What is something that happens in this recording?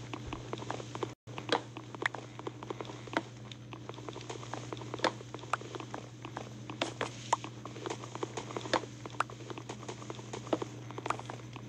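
Wooden blocks are knocked and broken with sharp, repeated taps.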